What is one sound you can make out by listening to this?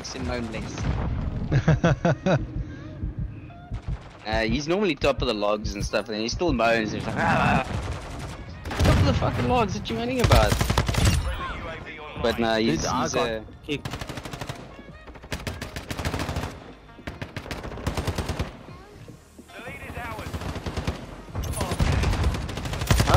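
Rapid rifle gunfire bursts out in loud cracks.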